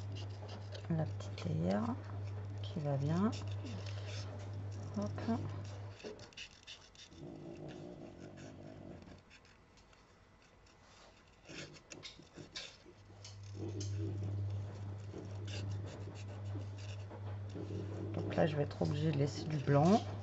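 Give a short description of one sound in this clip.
Scissors snip through thin paper.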